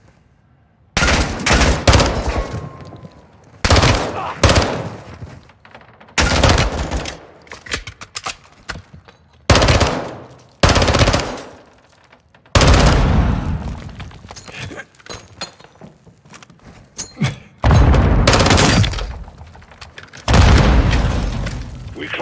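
Gunfire rings out in loud bursts that echo through a large hall.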